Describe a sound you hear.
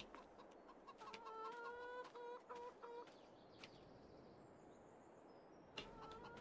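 Hens cluck nearby.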